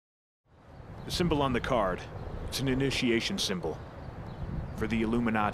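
A young man talks calmly outdoors.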